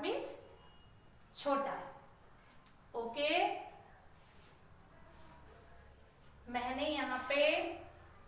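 A young woman speaks clearly and slowly, as if teaching, in a room with some echo.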